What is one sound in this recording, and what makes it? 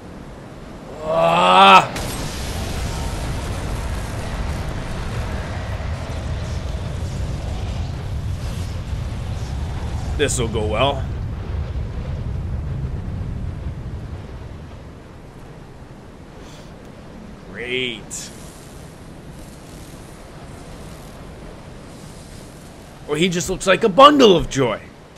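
A young man speaks into a close microphone in short, animated bursts.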